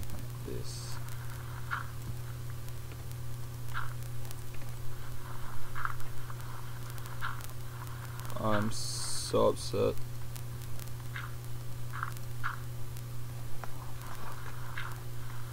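Stone blocks crunch in short bursts as they are dug out.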